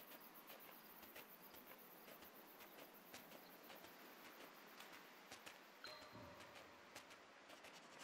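A fox's paws patter and crunch quickly across snow.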